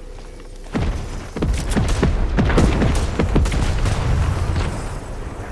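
Wooden planks clatter quickly as they are put up.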